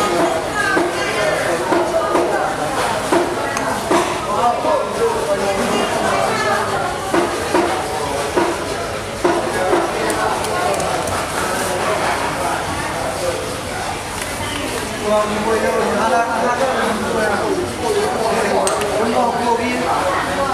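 A knife cuts through raw fish on a hard surface.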